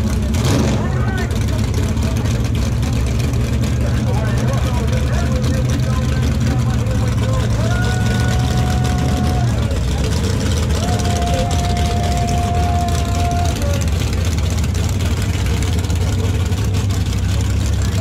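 A car engine idles with a deep, loud rumble.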